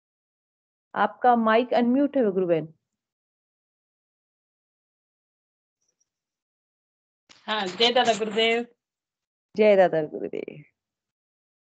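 A woman speaks over an online call in short bursts.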